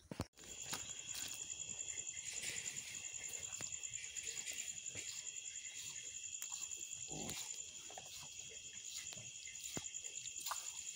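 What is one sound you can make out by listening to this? A cow licks a newborn calf with soft, wet strokes.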